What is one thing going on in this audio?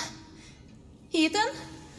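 A young woman answers weakly.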